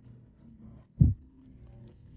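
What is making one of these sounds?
A fuel filler flap clicks.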